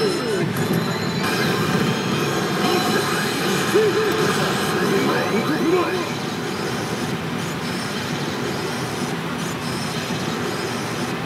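A pachinko machine plays loud electronic music and sound effects.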